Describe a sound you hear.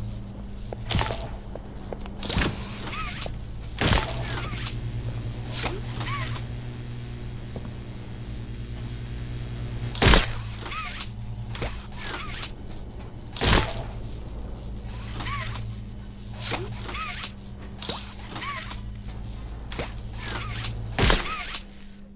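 An electric zap crackles sharply, again and again.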